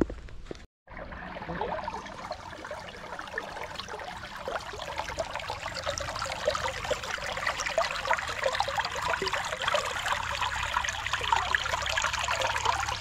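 A shallow stream trickles over rocks close by.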